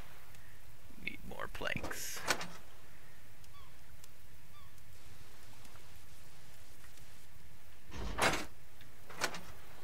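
Inventory items click and clatter as they are moved.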